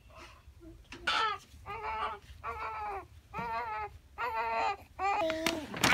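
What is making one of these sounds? A newborn baby cries in short, loud wails close by.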